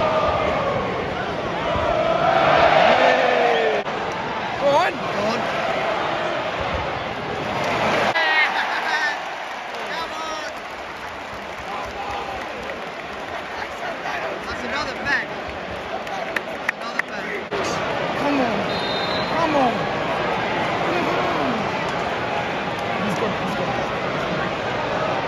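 Crowd voices roar and shout all around.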